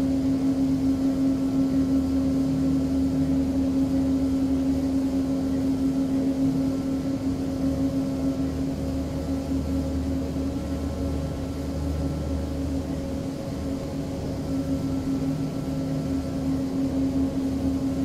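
A propeller aircraft engine hums steadily from inside the cockpit.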